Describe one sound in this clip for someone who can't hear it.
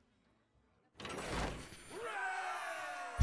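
A game card effect bursts with a shimmering magical whoosh.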